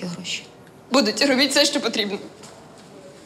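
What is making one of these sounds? A young woman answers with emotion.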